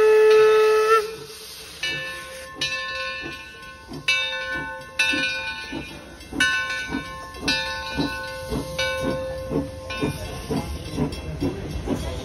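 A steam locomotive chuffs in rhythmic puffs.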